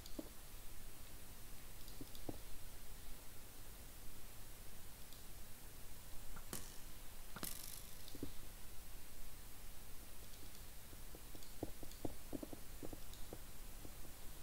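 Game blocks are placed with soft, short thuds.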